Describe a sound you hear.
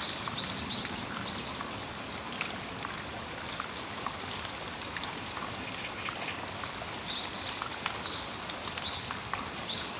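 Raindrops patter and tap on a metal awning.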